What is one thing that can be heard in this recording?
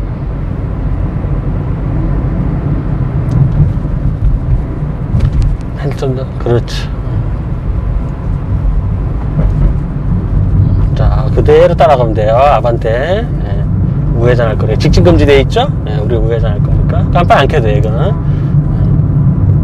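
A car engine hums steadily with road noise while driving.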